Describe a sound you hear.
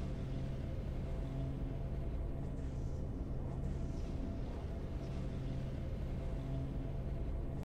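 Triumphant game music plays steadily.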